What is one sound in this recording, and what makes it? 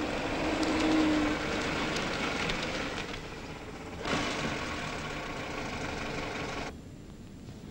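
A car engine hums as a car drives up.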